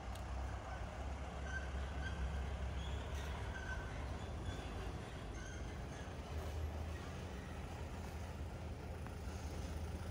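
A van's engine rumbles faintly down a narrow street.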